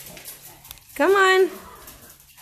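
A dog barks loudly once.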